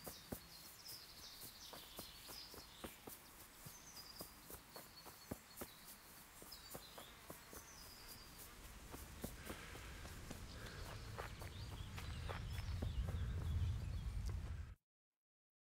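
Footsteps tread on a forest floor.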